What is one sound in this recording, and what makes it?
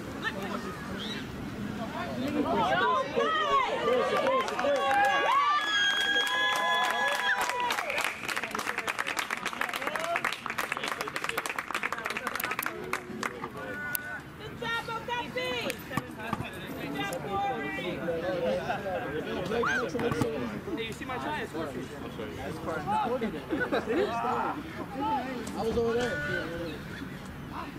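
Men shout to each other outdoors across an open field.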